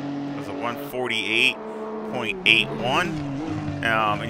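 Tyres squeal as a racing car brakes into a corner.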